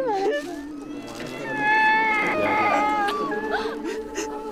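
A woman wails and sobs loudly close by.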